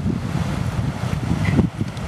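Water trickles over stones in a shallow stream.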